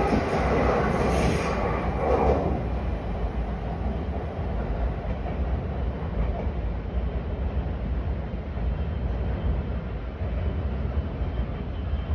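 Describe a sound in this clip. A train rumbles away into the distance and fades.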